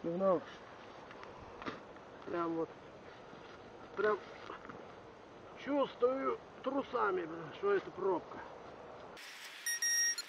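A young man talks nearby.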